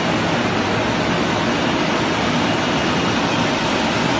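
Water churns and splashes in a tank.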